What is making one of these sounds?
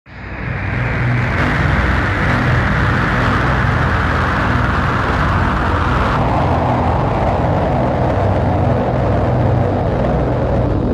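A huge crowd cheers and roars outdoors.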